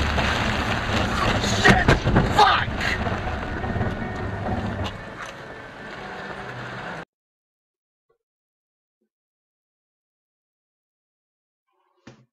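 Windscreen wipers thump across the glass.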